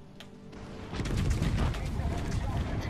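A shell crashes into the sea with a heavy splash.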